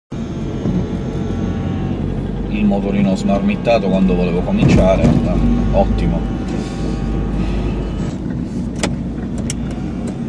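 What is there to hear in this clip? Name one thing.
A car engine hums steadily inside the car.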